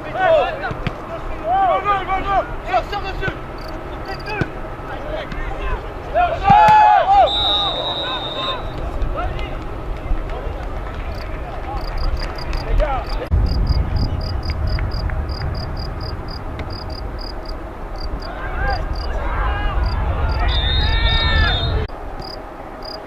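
Men shout and cheer loudly nearby, outdoors.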